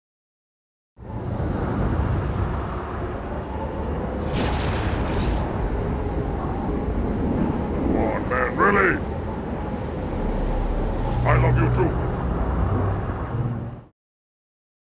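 A plasma rifle fires with sharp electronic zaps.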